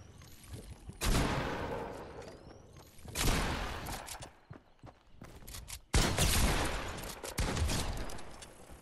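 A shotgun fires several loud blasts that ring out and fade.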